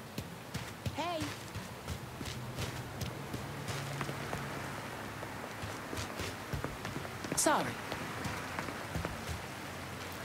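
Footsteps walk at a steady pace on hard ground.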